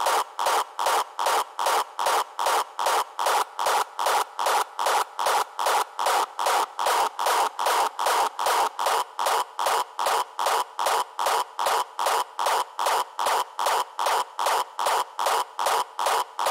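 A fast electronic beat pulses steadily and evenly throughout.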